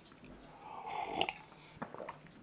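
An elderly man sips a drink noisily.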